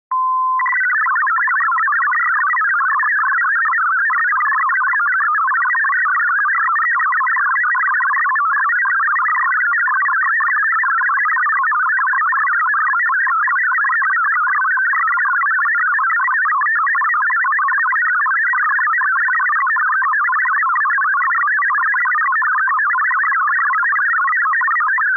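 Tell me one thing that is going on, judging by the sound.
An electronic keyer beeps out rapid Morse code tones.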